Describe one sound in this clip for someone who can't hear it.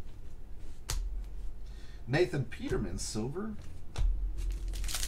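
Trading cards rustle and slide in a hand.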